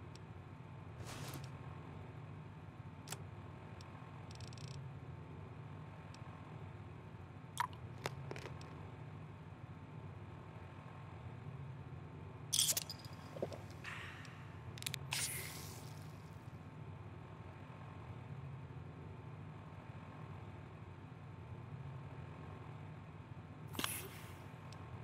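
Short electronic clicks sound as menu items are selected.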